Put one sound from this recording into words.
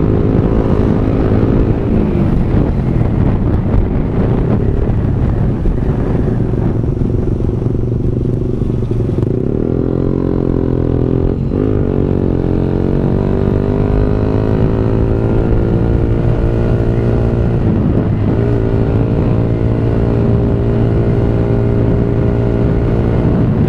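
A motorcycle engine hums steadily and changes pitch as the rider speeds up and slows down.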